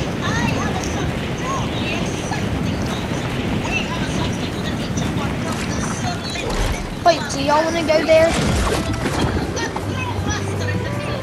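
Wind rushes steadily past as a glider descends.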